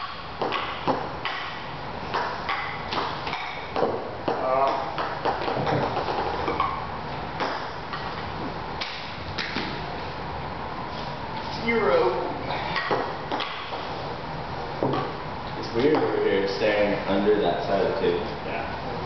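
A ping pong ball clicks sharply on a table in a bare echoing room.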